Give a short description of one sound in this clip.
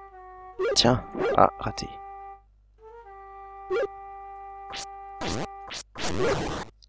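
Short electronic game tones chime.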